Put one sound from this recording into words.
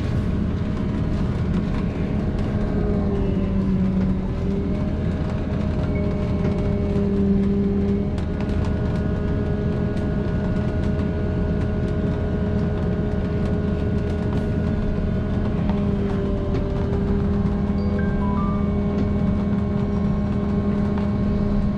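A bus engine hums steadily from inside the vehicle.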